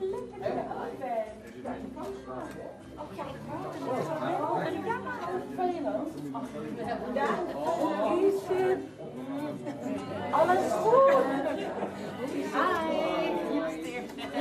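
Several men and women chat and laugh together in a lively crowd indoors.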